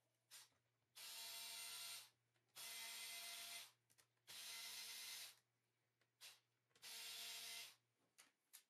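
A cordless screwdriver whirs in short bursts.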